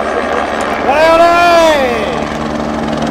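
A rally car speeds past close by, its engine pitch dropping as it goes.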